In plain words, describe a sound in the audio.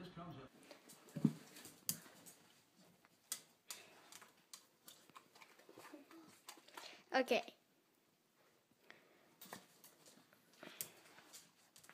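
A dog's claws tap and scrape on a hard floor.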